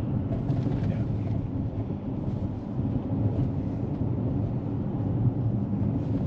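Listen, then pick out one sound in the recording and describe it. A car engine hums and tyres rumble steadily on the road from inside the car.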